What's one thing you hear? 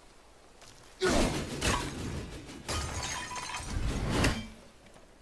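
An axe strikes something with heavy, crunching impacts.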